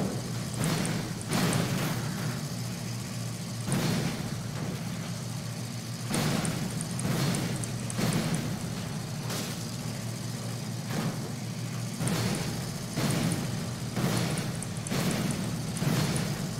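A heavy vehicle engine rumbles steadily.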